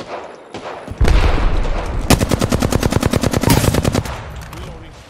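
Rapid gunfire rattles in a fast burst.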